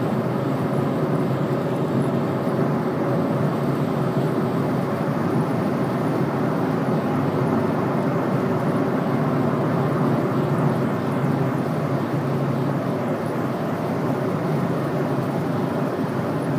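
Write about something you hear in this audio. Tyres roar steadily on a highway as a car drives at speed.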